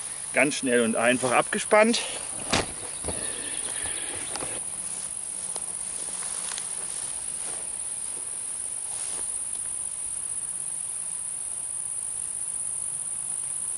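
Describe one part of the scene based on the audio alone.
Dry grass rustles underfoot.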